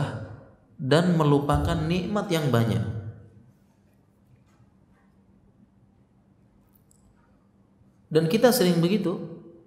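A man speaks calmly and with expression into a microphone, in a slightly echoing room.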